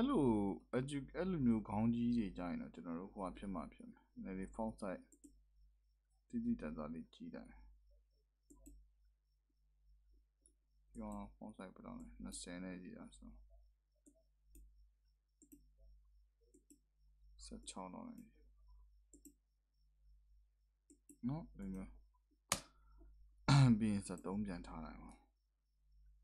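A young man talks calmly and close up, with pauses.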